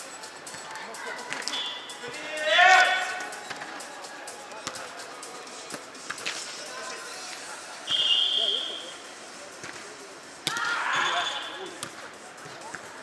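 Young men call out and shout during play, echoing in a large hall.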